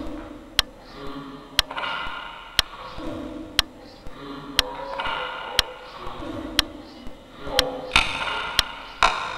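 A clock ticks loudly and steadily, once every second.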